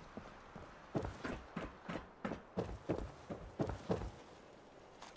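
Footsteps clang on metal stairs.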